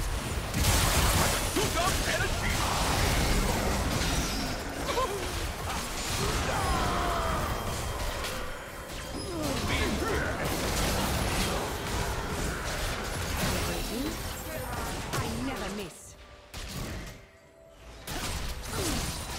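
Spell effects crackle and burst in a video game battle.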